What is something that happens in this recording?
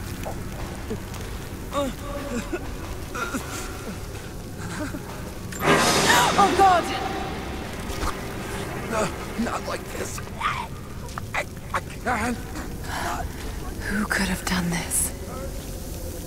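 A burning flare hisses and crackles.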